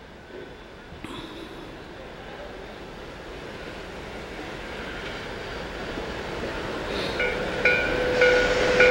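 A steam locomotive chugs closer, growing louder.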